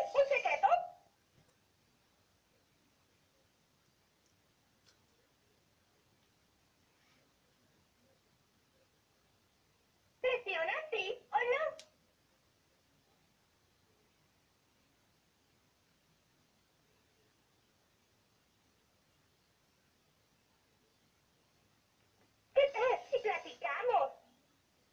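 A talking toy doll speaks in a high, cheerful recorded voice through a small tinny speaker, in short bursts.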